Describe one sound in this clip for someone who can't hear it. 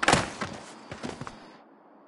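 A skateboard clatters as a skater falls.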